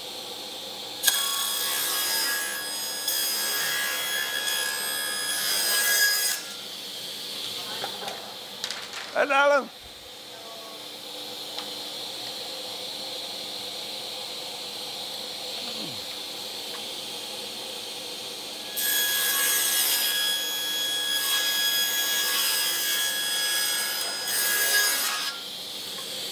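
A table saw whines as it cuts through a strip of wood.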